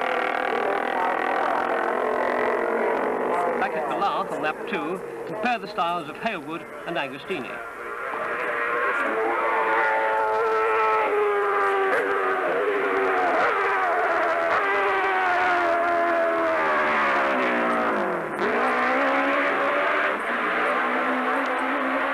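Racing motorcycle engines scream and whine as they speed past.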